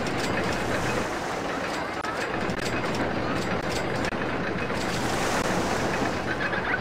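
Roller coaster cars rumble and clatter along their tracks.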